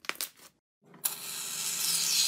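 A spray can hisses out shaving foam.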